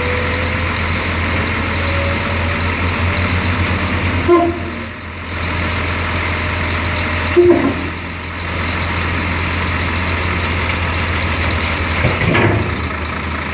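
A hook-lift hydraulic arm whines as it lowers a container.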